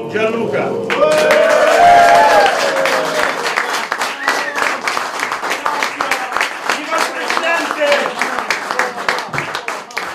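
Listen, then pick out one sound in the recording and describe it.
A small crowd applauds.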